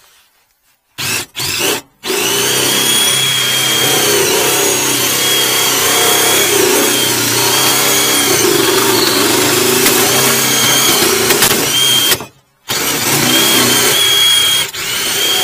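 A high-pressure water jet sprays loudly against metal with a steady roar.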